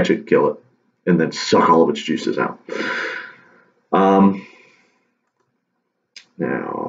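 A young man speaks calmly and close up, in short phrases with pauses.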